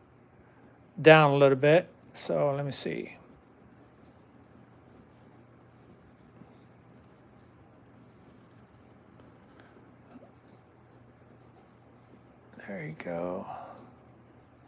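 A paintbrush dabs and scrapes softly on canvas.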